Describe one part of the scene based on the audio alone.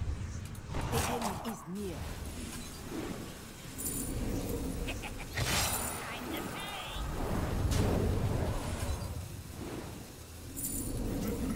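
Game sound effects whoosh and chime.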